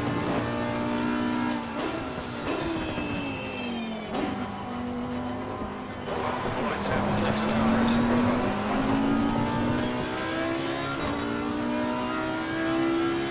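A V10 racing car engine revs high and changes pitch at each gear change.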